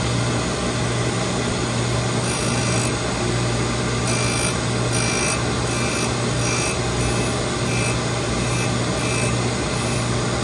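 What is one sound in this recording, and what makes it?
A grinding machine's motor hums steadily.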